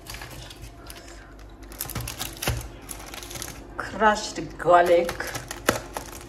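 Plastic packaging crinkles as it is handled.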